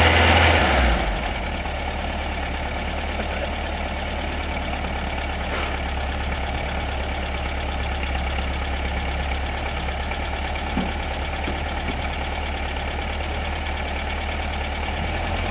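An air-cooled flat-four engine of a VW bus idles.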